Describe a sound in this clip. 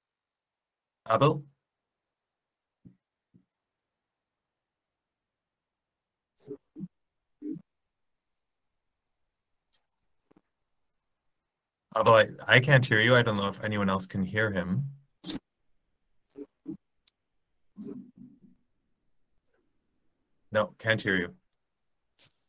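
A man speaks calmly in short bursts over an online call.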